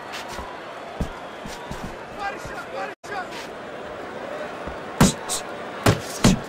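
Punches land with heavy thuds.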